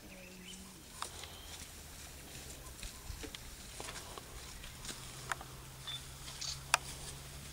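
Buffalo tear and chew dry grass nearby.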